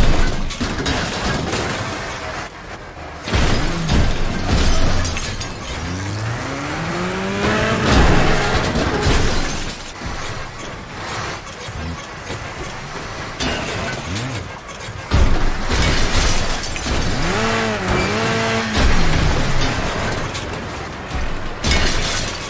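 Metal crunches and bangs as a car crashes and tumbles.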